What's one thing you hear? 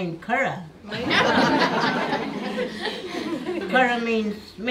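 A small audience laughs together.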